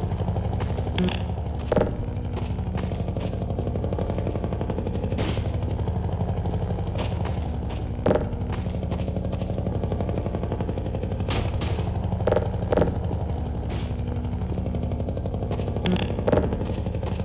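Concrete blocks clunk and thud against hard surfaces.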